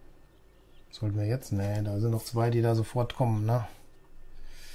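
An older man talks calmly into a close microphone.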